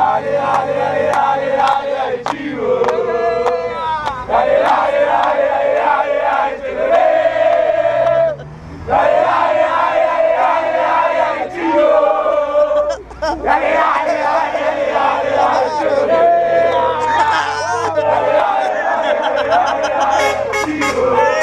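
A crowd of men sings and chants loudly together.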